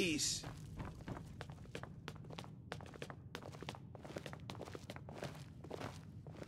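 Footsteps climb stone stairs and cross a hard floor.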